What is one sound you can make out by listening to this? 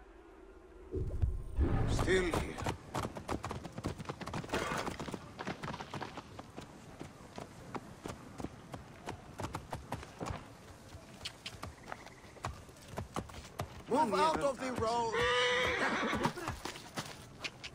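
Hooves clop on stone as horses walk nearby.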